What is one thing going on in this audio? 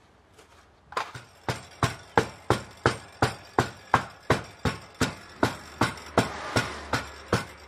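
Feet stamp down on packed sand in a steady rhythm.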